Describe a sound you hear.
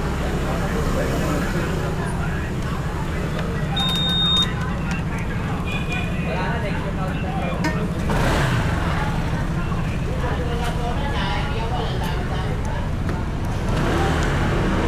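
A scooter engine idles nearby.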